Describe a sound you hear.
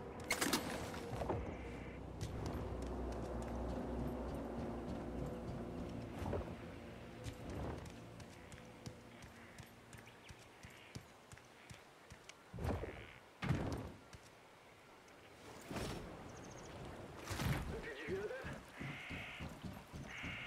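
Footsteps patter quickly on wooden boards.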